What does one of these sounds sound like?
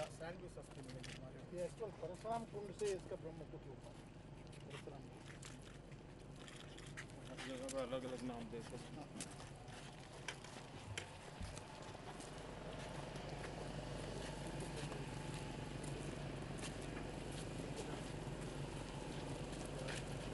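Footsteps tap on pavement as a group walks.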